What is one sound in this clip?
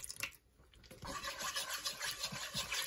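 A utensil stirs thick sauce around a frying pan.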